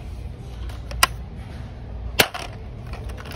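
A cardboard box of screws rattles as a hand handles it.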